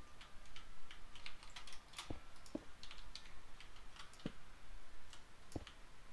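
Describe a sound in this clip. Stone blocks are placed one after another with short, dull knocks.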